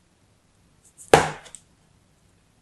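A plastic cup taps down onto sand.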